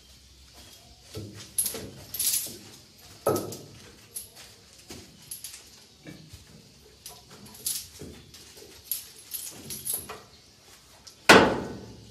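Metal clanks and rattles sharply.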